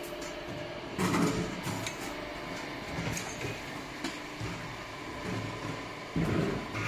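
Metal paint cans clank on a roller conveyor.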